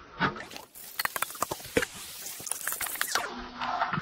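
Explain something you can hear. A metal spatula scrapes and clatters against a metal pan.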